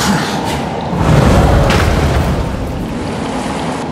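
A deep magical whoosh rumbles loudly.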